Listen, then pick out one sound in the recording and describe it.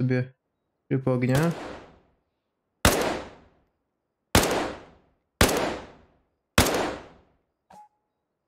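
Rifle shots crack sharply and echo away.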